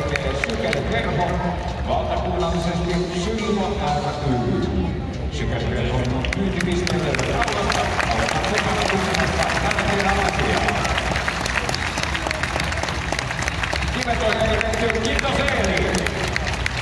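A crowd cheers and chants loudly in a large echoing arena.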